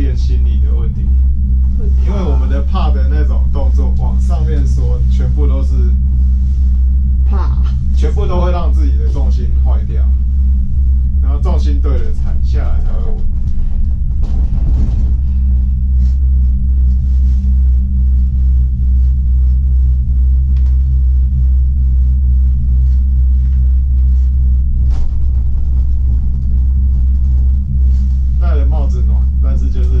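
A gondola cabin hums and rumbles steadily.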